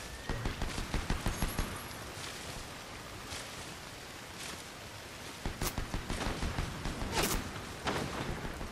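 Footsteps rustle quickly through dense leafy plants.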